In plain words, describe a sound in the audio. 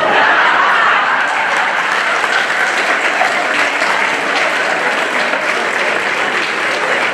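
An audience claps and laughs in a large hall.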